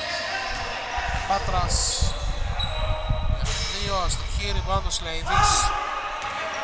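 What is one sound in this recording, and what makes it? A basketball bounces on a hard floor in a large echoing hall.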